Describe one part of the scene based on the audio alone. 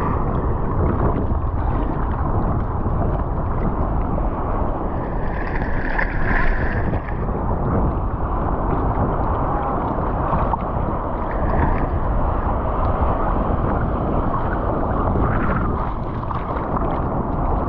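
Water splashes as a hand paddles through it.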